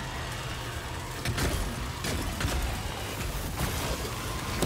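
A heavy gun fires in bursts of loud shots.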